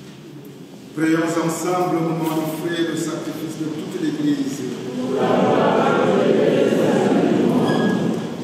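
A man sings a prayer through a microphone in an echoing hall.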